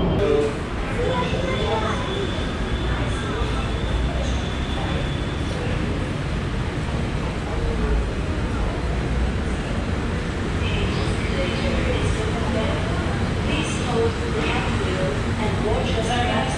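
An escalator hums and rumbles steadily.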